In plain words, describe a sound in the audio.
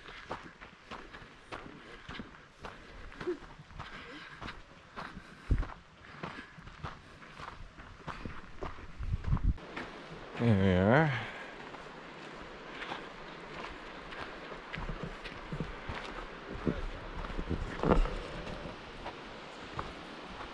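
Footsteps crunch steadily on a dirt trail close by.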